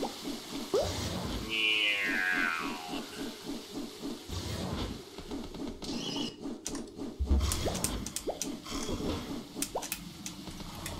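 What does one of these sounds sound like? Electronic game music plays with a steady pulsing beat.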